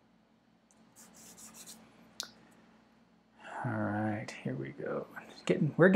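Pastel rubs and scratches softly on paper.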